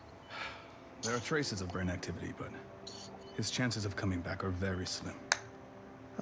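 A middle-aged man speaks calmly and gravely.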